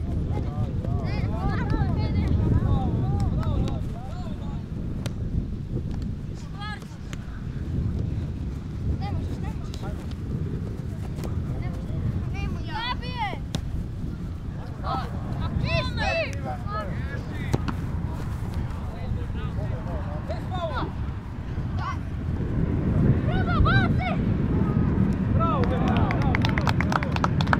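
Young players shout to each other across an open field.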